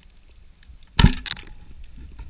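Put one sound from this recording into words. A speargun fires underwater with a sharp snap.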